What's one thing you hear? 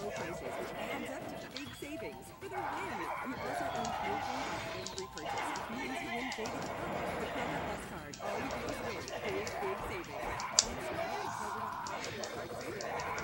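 Game fighters trade blows with sharp hits and whooshes.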